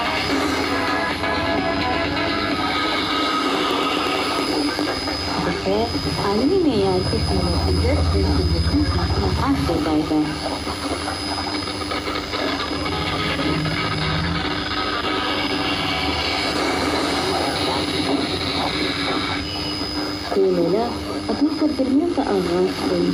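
A radio broadcast plays steadily through a small loudspeaker.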